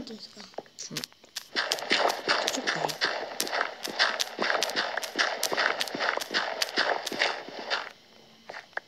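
Blocks crunch rapidly as they are dug out.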